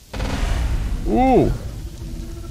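Lightning crackles loudly.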